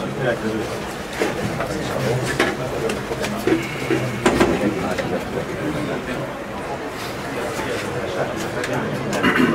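A crowd of men and women talk and shout over one another close by.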